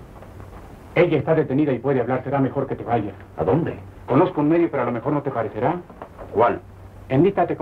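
A man speaks tensely nearby.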